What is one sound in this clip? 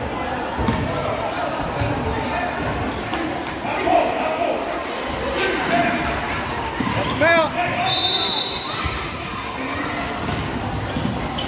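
Spectators chatter in a large echoing gym.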